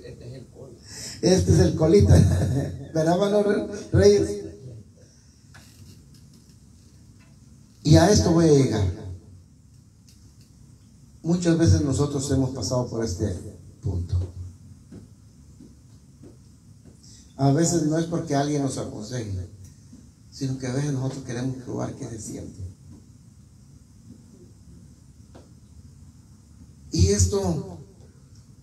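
An older man sings into a microphone through loudspeakers in a room, in phrases with pauses between them.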